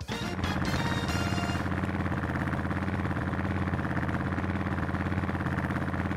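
Kart engines idle with a rapid, steady rumble.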